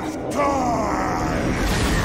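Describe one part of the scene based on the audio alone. Jets roar as a robot hovers.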